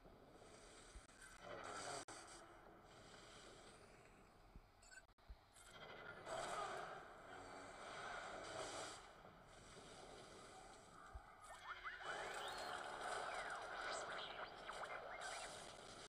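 Laser blasts and explosions crackle in a fast battle.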